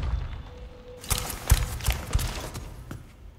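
Footsteps thud heavily on a hard floor.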